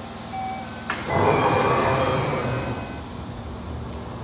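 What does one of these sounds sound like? Train doors slide with a loud rush of air.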